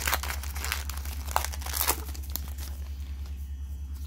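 Trading cards rustle and flick against each other.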